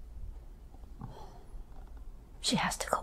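An elderly woman moans softly close by.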